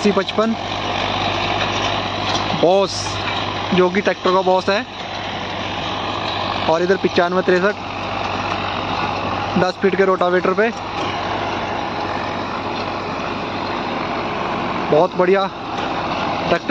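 A tractor engine runs under load.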